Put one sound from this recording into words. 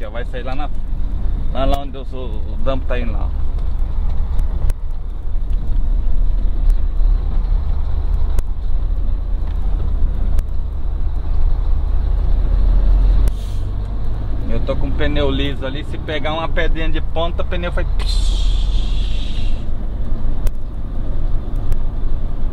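A heavy truck engine rumbles low and steady while driving.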